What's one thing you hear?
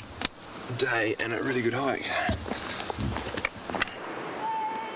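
A man speaks breathlessly, close by.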